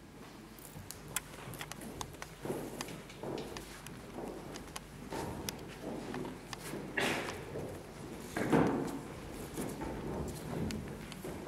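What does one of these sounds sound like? Footsteps thump on a wooden stage.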